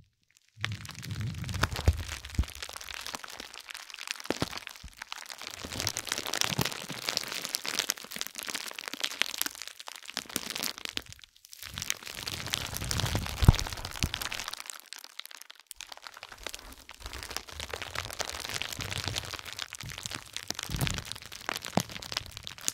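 Bubble wrap crinkles and crackles close up as fingers squeeze it.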